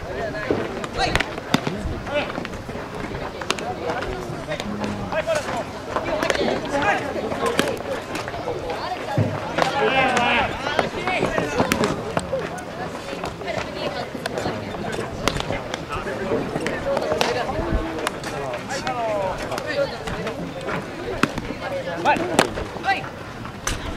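Young boys shout and call out across an open field.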